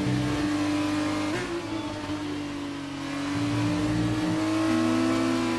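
A racing car engine whines loudly at high revs, dropping in pitch on gear changes and rising again.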